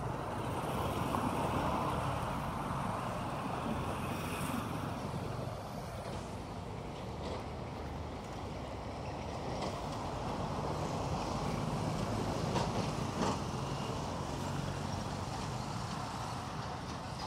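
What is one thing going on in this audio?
Wind gusts steadily across the microphone outdoors.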